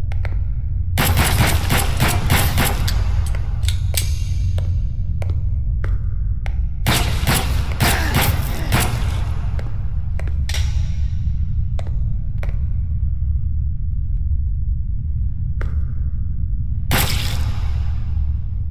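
Gunshots ring out in rapid bursts with a sharp echo.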